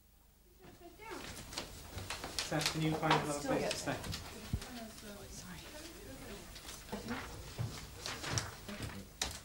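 Paper rustles and shuffles as sheets and envelopes are handled.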